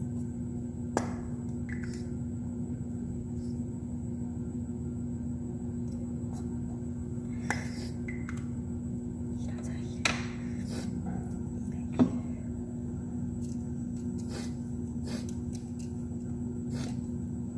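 Small objects click and tap as they are handled.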